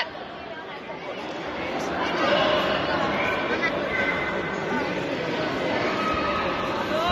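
A crowd of children shouts and cheers in a large echoing hall.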